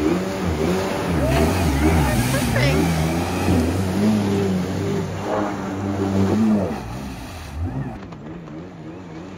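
A personal watercraft engine revs up and down, whining and roaring close by.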